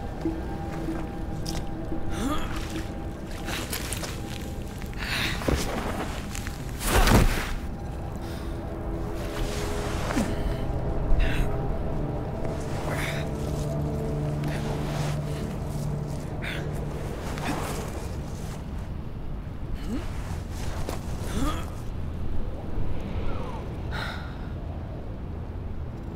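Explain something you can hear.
Footsteps splash through shallow water and mud.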